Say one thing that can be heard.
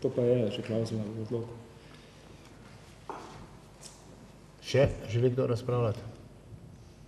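A middle-aged man speaks into a microphone in an echoing hall.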